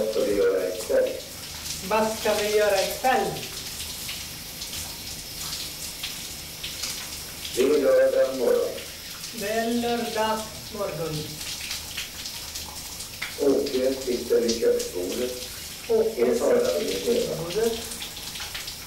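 A man sings in short phrases nearby.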